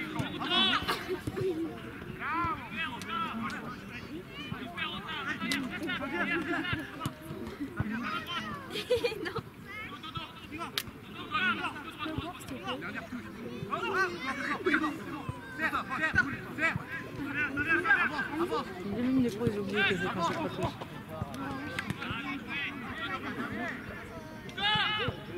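A football is kicked with dull thuds outdoors.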